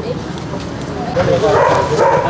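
A woman speaks through a microphone and loudspeaker.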